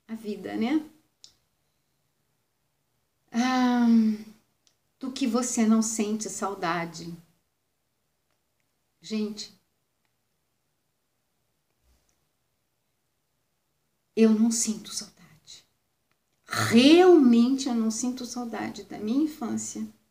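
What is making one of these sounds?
A woman speaks close to the microphone with animation, pausing often.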